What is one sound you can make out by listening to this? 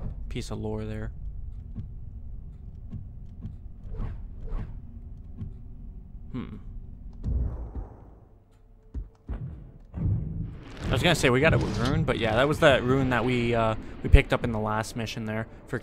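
Game menu sounds tick softly as selections change.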